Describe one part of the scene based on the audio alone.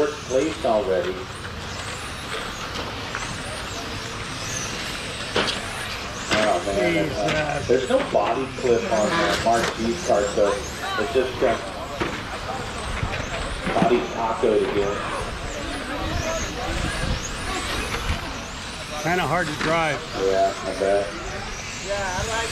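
Small remote-control race cars whine as they speed around a track.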